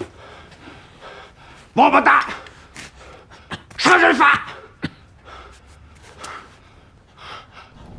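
A middle-aged man pants heavily.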